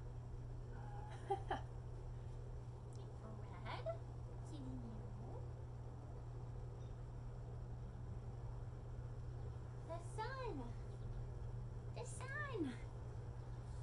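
A young girl calls out at a distance, outdoors.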